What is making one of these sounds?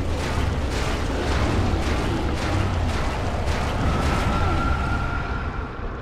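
A sword strikes flesh with heavy thuds.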